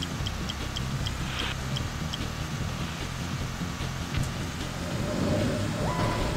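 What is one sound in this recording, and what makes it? A video game race car's engine hums steadily.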